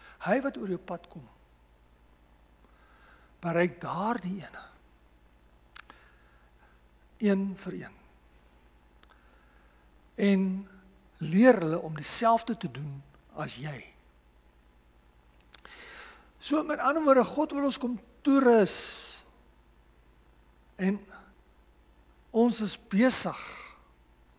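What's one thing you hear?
A middle-aged man preaches through a microphone in bursts with long pauses.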